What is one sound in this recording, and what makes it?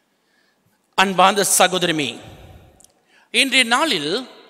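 A man speaks into a microphone in a reverberant hall.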